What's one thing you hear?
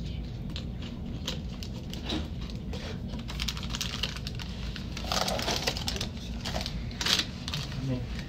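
Small objects clink and tap on a hard surface.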